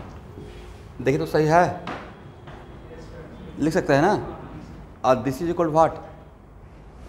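A man speaks with animation in a slightly echoing room.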